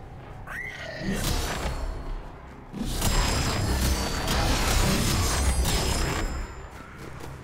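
A weapon swings and strikes with heavy whooshing thuds.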